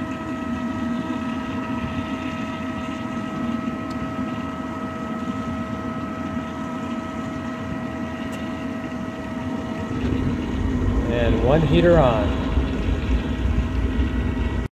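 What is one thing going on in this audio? A heater unit hums steadily.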